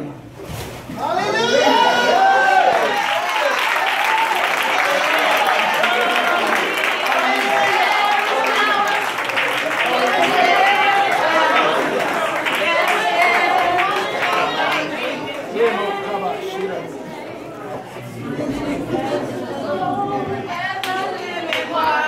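A group of men and women sing loudly together in a room.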